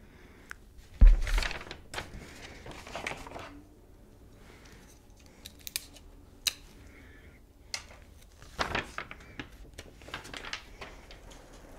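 Paper rustles and crinkles.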